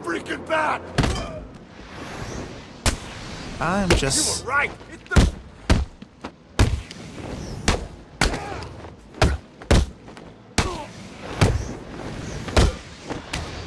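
Punches and kicks land with heavy thuds, again and again.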